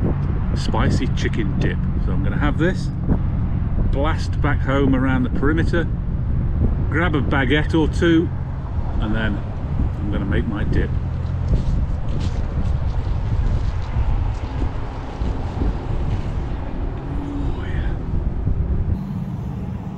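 Wind rumbles steadily across the microphone.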